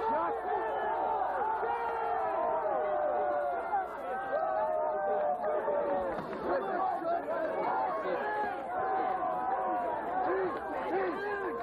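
A large crowd of young people chatters and shouts all around, outdoors.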